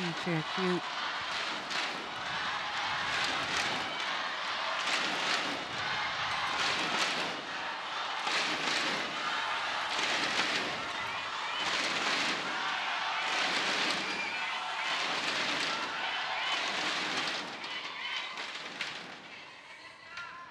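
A large crowd chants and cheers in rhythmic waves in an echoing arena.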